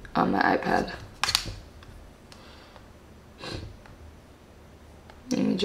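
A tablet's case taps and clicks in a woman's hands.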